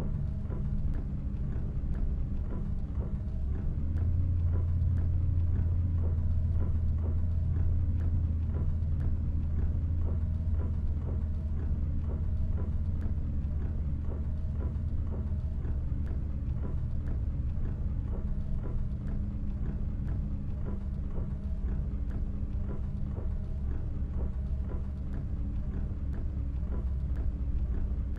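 Windscreen wipers sweep back and forth with a soft rhythmic thump.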